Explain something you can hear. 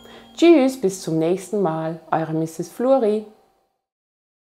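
A woman talks warmly and with animation, close to a microphone.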